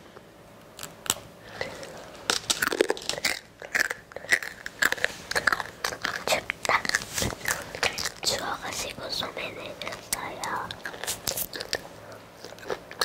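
A young girl whispers softly close to a microphone.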